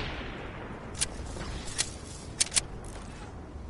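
Quick footsteps run across the ground.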